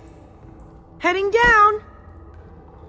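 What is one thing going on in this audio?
Another young man shouts from a distance.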